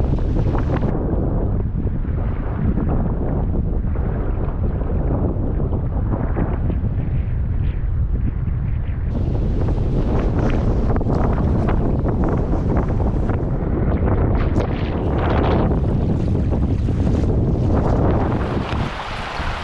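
Strong wind roars outdoors.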